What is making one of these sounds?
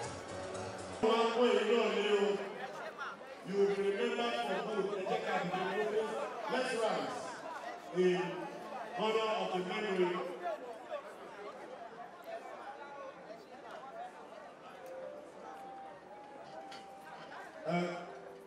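Women talk and greet each other cheerfully in a crowded, noisy hall.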